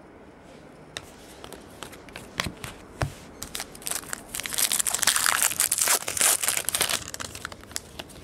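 A foil wrapper crinkles and tears up close.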